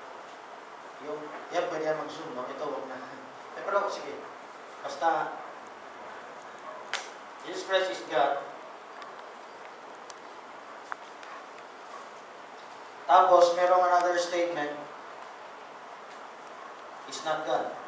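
A middle-aged man speaks through a microphone over loudspeakers, lecturing in pauses.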